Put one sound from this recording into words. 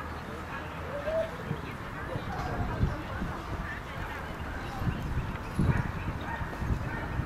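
Adult men and a woman talk quietly at a distance outdoors.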